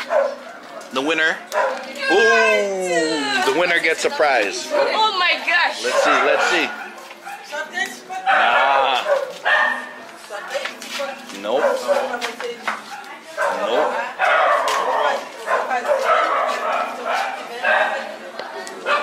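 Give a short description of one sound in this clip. Young boys shout and chatter nearby.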